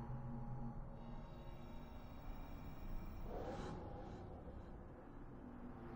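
A magical whooshing rush swells and sweeps past.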